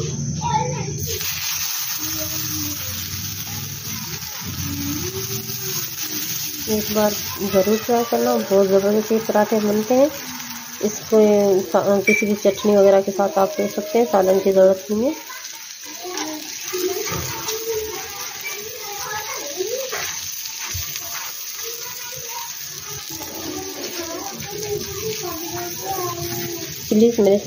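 Batter sizzles softly on a hot pan.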